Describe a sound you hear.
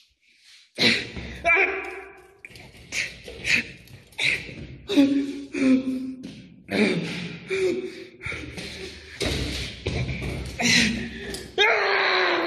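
A metal door handle rattles.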